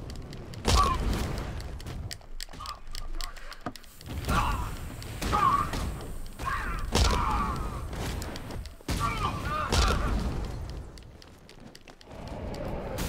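Heavy punches and kicks thud rapidly in a brawl.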